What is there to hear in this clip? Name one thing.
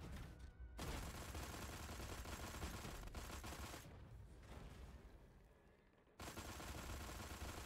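Laser blasts and explosions roar and crackle in a game battle.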